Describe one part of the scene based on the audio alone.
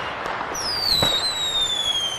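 A firework bursts with a bang.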